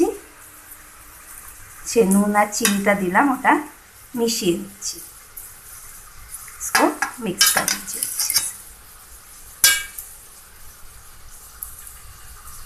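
A metal spoon scrapes and stirs dry flakes in a steel bowl.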